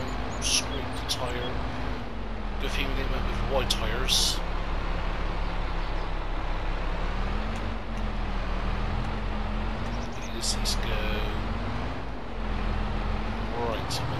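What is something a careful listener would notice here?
A tractor engine rumbles steadily, its pitch rising and falling slightly.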